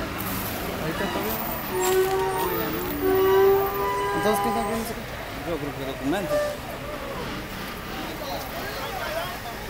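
Several men talk with each other nearby.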